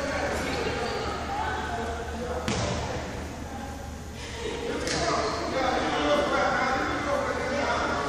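Young girls call out and chatter in a large echoing gym.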